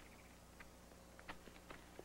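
Horses' hooves thud on the ground.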